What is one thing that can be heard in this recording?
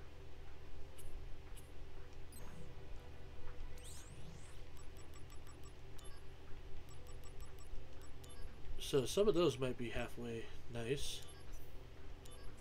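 Short menu beeps sound as options are selected.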